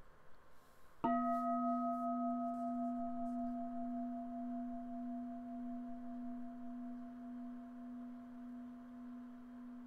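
A singing bowl is struck once and rings with a long, steady tone that slowly fades.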